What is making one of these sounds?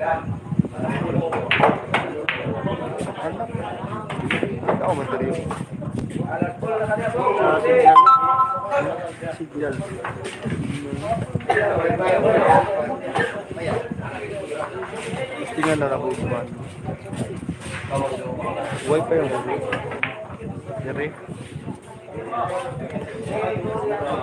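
Billiard balls clack together on a pool table.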